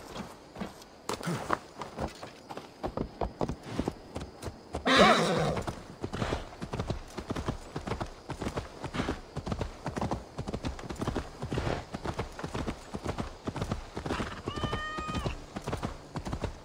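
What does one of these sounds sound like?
Horse hooves clop steadily on a dirt path.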